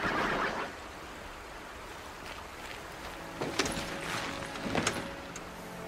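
A large mechanical beast clanks and stomps heavily.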